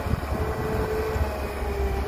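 Dirt and stones pour from an excavator bucket into a truck bed.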